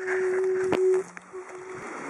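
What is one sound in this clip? A young woman hums a steady note nearby.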